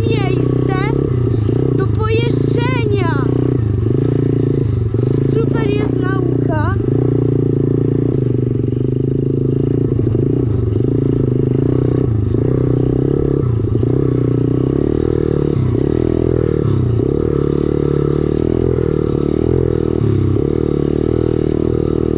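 A dirt bike engine roars loudly up close, rising and falling.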